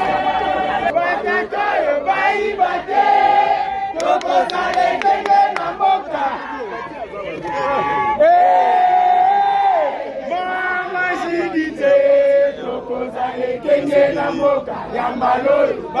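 A woman sings out loudly close by.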